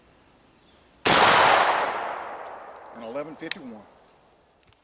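A gunshot cracks loudly outdoors and echoes away.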